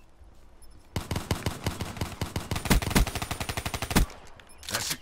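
An automatic rifle fires a rapid burst.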